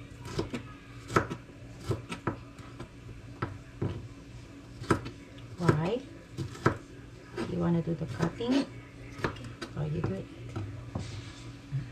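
A knife chops on a cutting board with sharp, quick knocks.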